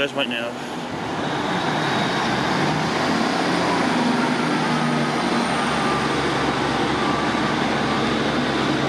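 A diesel train engine revs up louder as the train pulls away.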